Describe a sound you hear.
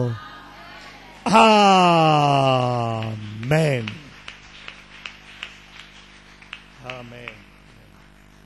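A middle-aged man speaks through a microphone with strong emotion, holding a long, slowly falling cry.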